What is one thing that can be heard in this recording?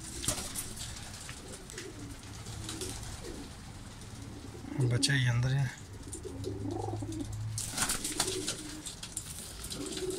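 Pigeons coo softly and continuously nearby.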